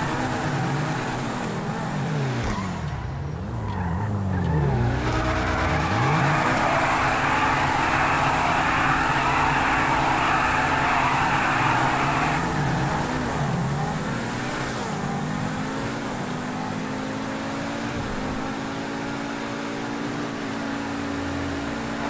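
A sports car engine revs up and down as gears change.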